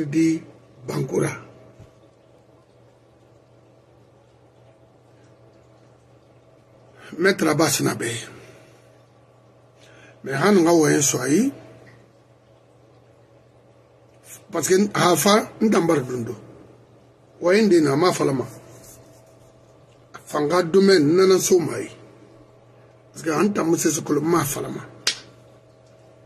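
An older man speaks with animation in short bursts, close to a microphone.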